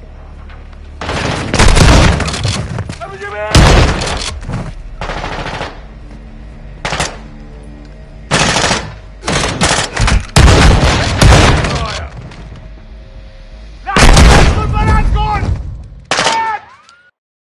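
Rifle shots ring out in loud bursts.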